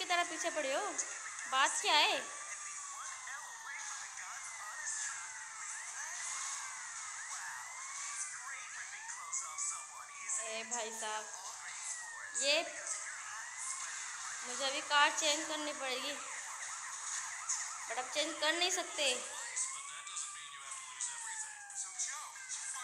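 A police siren wails continuously, rising and falling.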